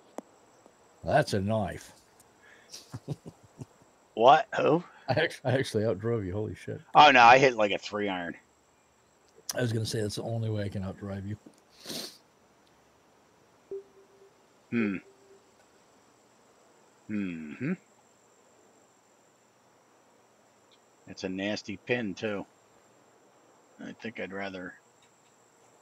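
A middle-aged man talks casually into a headset microphone, in short bursts.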